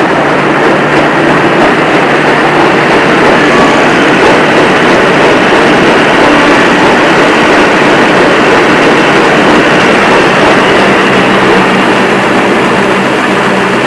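Grain pours in a rushing stream into a metal trailer.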